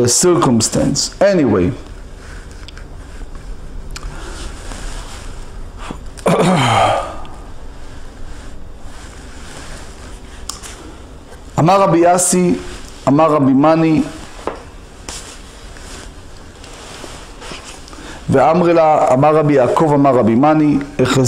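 A man speaks in short bursts, with long pauses between them, close to a microphone.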